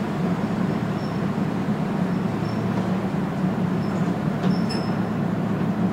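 Train wheels squeal on a curve.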